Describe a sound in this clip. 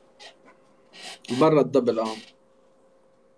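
A young man speaks loudly through a phone microphone.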